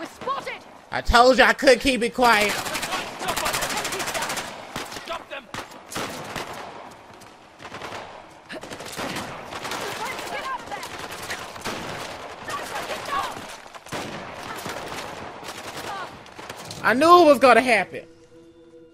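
Rapid gunfire cracks and rattles close by.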